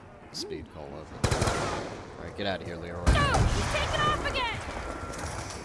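Zombies growl and snarl.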